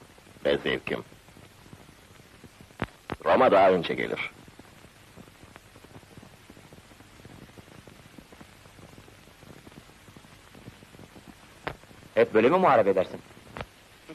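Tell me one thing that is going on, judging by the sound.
A man speaks in short, calm phrases.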